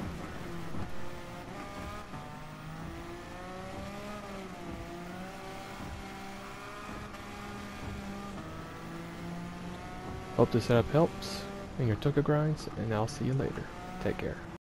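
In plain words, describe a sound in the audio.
A race car engine roars at high revs, its pitch rising and falling with gear changes.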